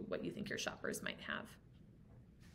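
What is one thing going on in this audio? A woman speaks calmly into a microphone, as if over an online call.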